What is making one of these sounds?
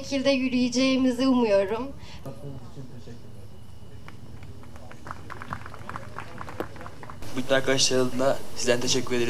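A man speaks to an audience through a loudspeaker outdoors.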